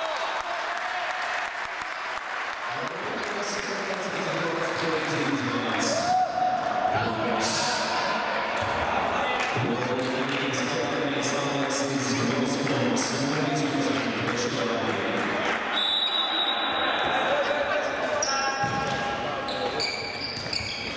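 A ball is kicked on a hard indoor floor.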